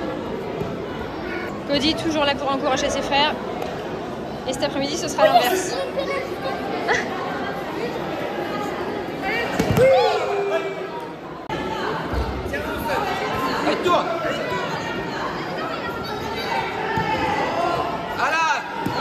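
A crowd of children and adults chatter and call out in a large echoing hall.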